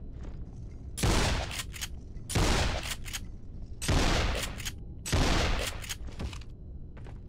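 A shotgun fires several loud blasts with an echo.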